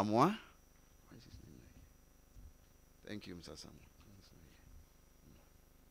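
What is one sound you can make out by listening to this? A man speaks quietly at a distance.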